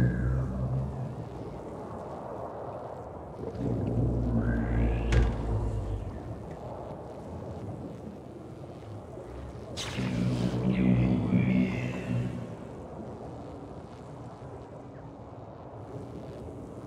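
Bubbling underwater game effects swell and whoosh.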